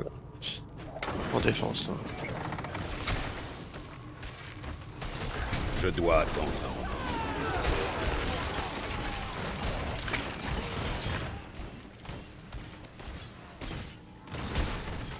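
Game combat sounds of blows and spells clash and crackle.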